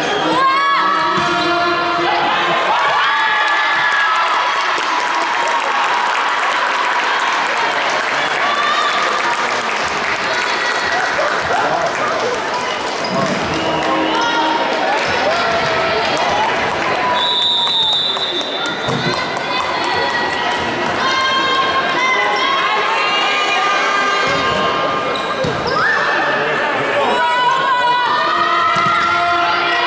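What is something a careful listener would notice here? Spectators chatter and cheer in a large echoing hall.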